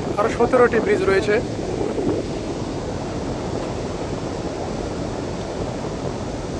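Water laps gently against the piers.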